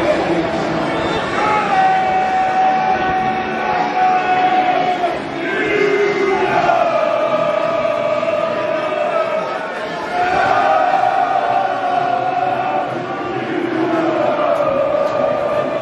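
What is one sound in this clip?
A large crowd of men and women sings together loudly in long, drawn-out phrases outdoors.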